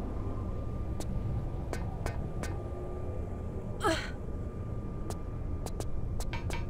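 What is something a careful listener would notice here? Footsteps clack on a metal grate.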